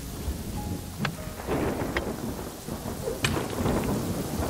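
Rocks crack and shatter with sharp blows.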